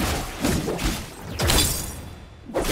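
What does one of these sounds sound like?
A sword swings with a sharp whoosh.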